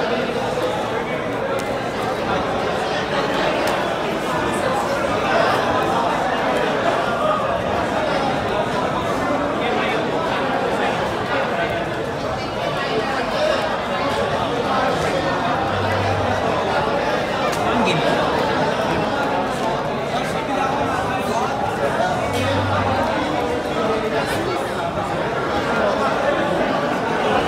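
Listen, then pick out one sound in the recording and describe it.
Playing cards shuffle and riffle in hands.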